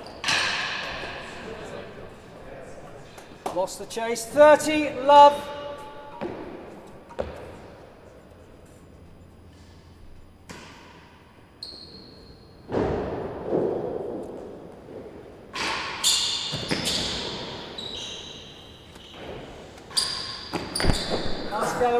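A ball is struck hard with a racket, echoing through a large hall.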